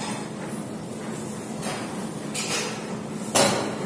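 Metal gym weights clank.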